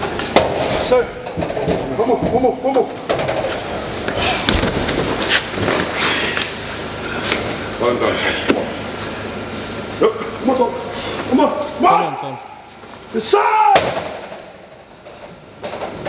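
Heavy stone balls thud onto metal platforms.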